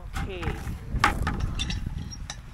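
A metal feeder lid clanks.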